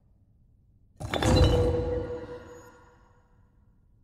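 A heavy metal clank rings out.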